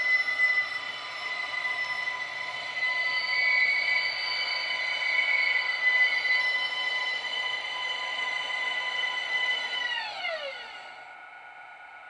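A model train's electric motor whines steadily, then drops in pitch as the train slows to a stop.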